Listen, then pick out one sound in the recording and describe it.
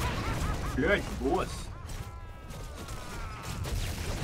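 Magical blasts and clashing combat effects crackle in a video game.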